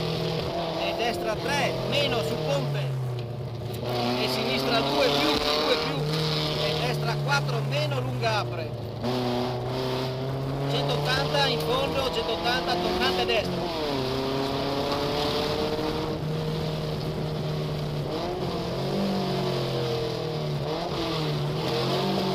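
A car engine revs hard, rising and dropping in pitch as gears change.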